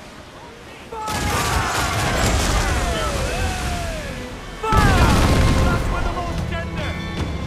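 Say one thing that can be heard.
Ship cannons fire in a broadside.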